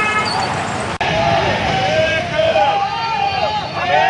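A crowd of men chants and shouts outdoors.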